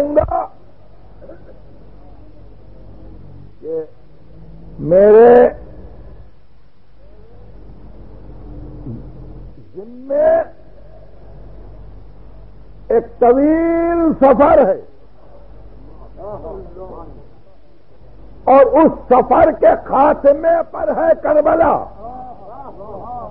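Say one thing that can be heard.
A middle-aged man recites in a drawn-out, melodic voice, with pauses between phrases.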